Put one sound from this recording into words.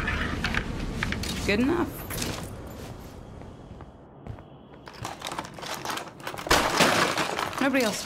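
Someone rummages through a drawer, shuffling items around.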